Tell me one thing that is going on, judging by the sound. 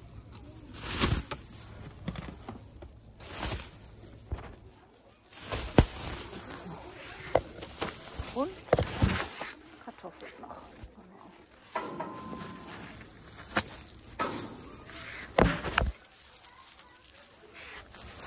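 A plastic bag crinkles and rustles in hand.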